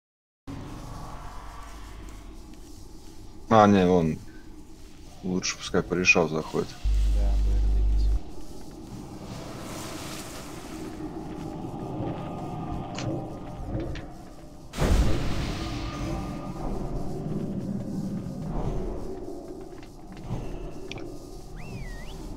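Spell effects and combat sounds clash and crackle in a fantasy battle.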